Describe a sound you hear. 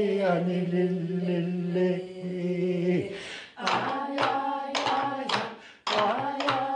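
An elderly man sings loudly and expressively close by.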